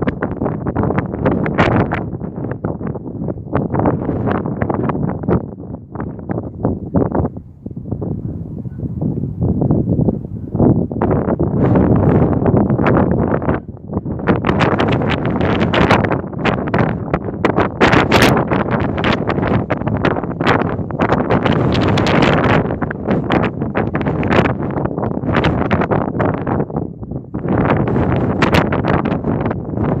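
Strong wind gusts loudly outdoors, buffeting the microphone.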